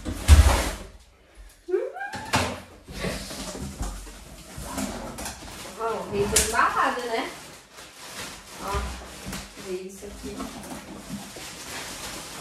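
A young man talks casually.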